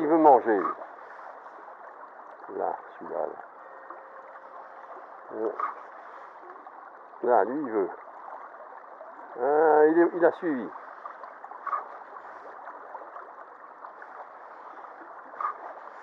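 A shallow stream babbles steadily over stones.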